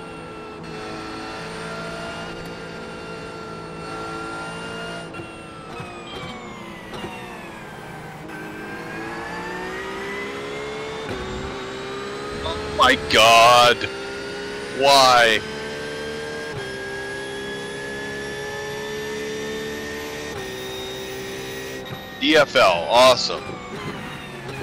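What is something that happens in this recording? A racing car engine drones and revs up and down through gear changes.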